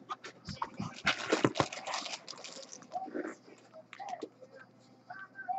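A plastic wrapper crinkles and rustles as it is handled.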